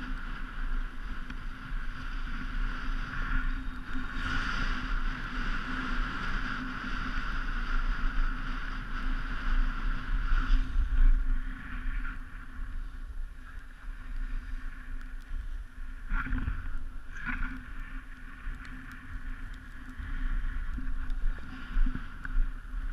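Wind rumbles and buffets close by, outdoors.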